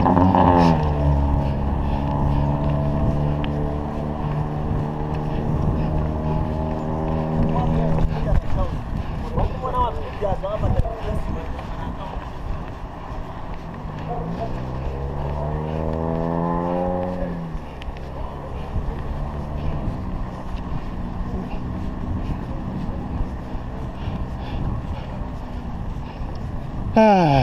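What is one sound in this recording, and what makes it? Bicycle tyres roll on asphalt.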